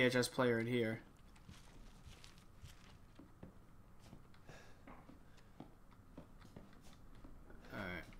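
Footsteps tap softly on a wooden floor.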